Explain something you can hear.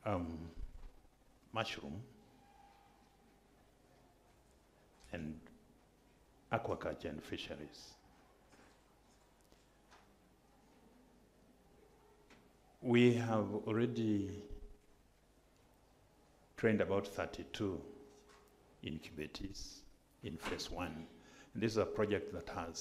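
A middle-aged man speaks calmly into a microphone, with long pauses between phrases.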